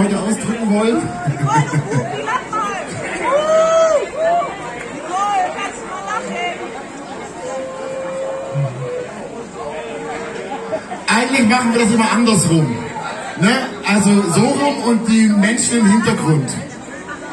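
A group of men and women sing together through a loudspeaker system.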